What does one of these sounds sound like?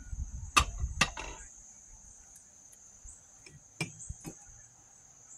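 Glassware clinks and knocks on a table.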